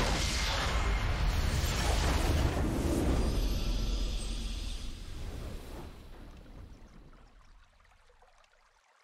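A game's victory fanfare swells loudly and then fades away.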